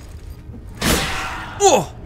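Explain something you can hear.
Metal blades clash in a fight.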